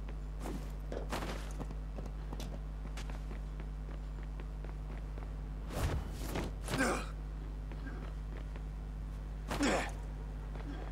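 Feet thud on a rooftop as a runner jumps and lands.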